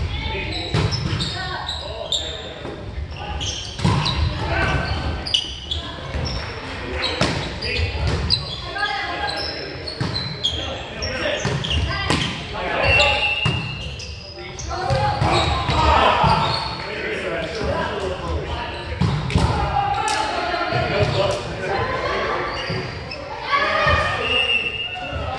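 A volleyball thumps off players' arms and hands in a large echoing gym.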